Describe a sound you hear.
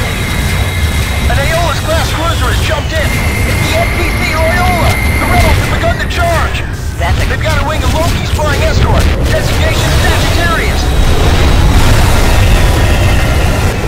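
Laser guns fire in rapid zaps.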